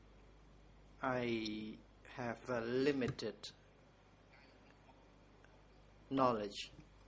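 An elderly man speaks calmly into a microphone in short bursts.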